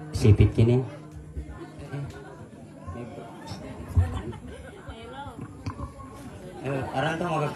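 A man plays an electric guitar through an amplifier.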